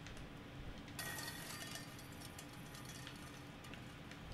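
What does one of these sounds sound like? Tin cans hanging on a string clatter and jingle.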